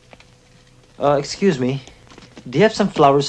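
A man speaks up close.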